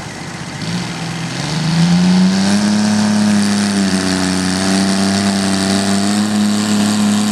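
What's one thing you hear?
A small tractor engine roars loudly and revs up as it pulls a heavy load.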